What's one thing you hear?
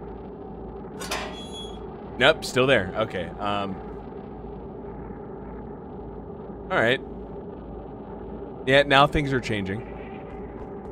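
A young man speaks into a close microphone in short bursts.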